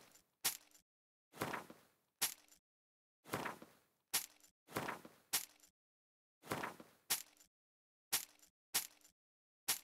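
Short game menu clicks sound again and again.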